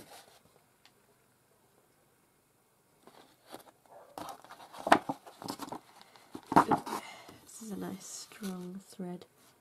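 Stiff paper rustles and slides across a sheet of paper.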